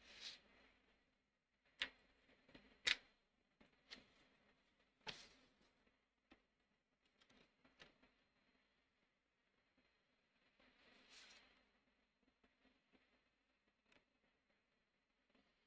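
Papers rustle and slide across a table.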